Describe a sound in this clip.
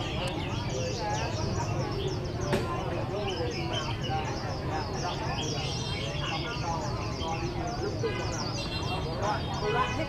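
A crowd of men chat in low voices nearby.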